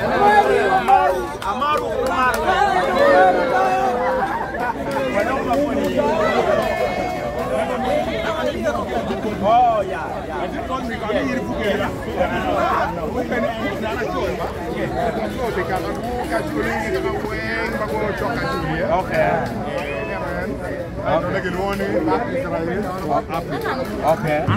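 A crowd of young men and women talks and shouts excitedly close by, outdoors.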